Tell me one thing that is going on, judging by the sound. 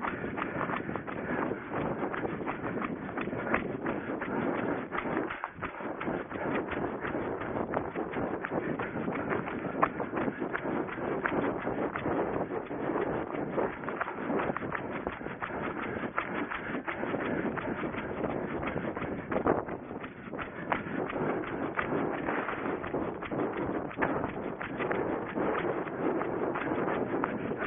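Footsteps rustle through long dry grass at a steady running pace.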